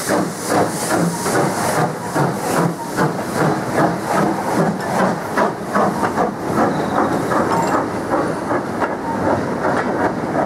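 Goods wagons clatter over the rail joints as they roll past.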